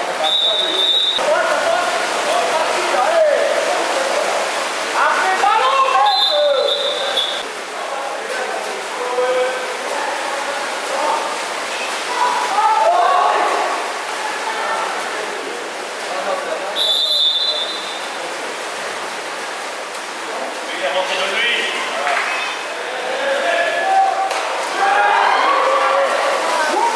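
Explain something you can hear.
Water splashes as swimmers thrash in an echoing indoor pool hall.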